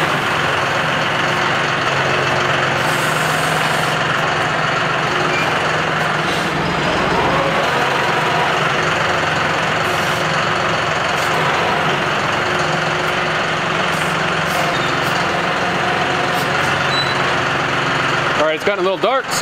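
A tractor engine runs steadily and rumbles close by.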